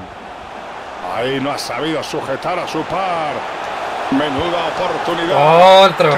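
A stadium crowd roars, growing louder.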